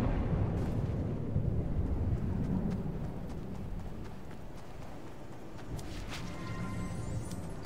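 Footsteps crunch quickly over snow.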